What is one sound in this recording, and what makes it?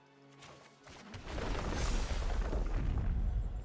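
A game's magical whoosh swells and rumbles as a card is played.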